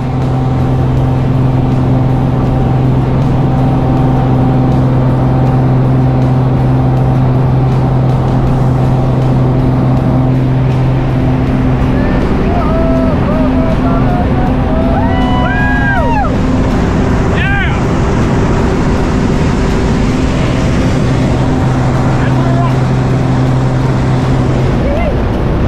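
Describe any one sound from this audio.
A small plane's engine drones loudly and steadily from close by.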